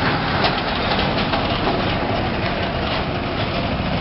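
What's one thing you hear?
A truck engine rumbles as the truck drives past.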